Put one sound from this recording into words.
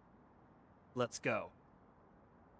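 A young man speaks briefly in a low voice.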